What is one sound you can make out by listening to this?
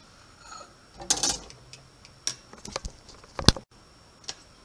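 A plate clinks and scrapes on a stone countertop.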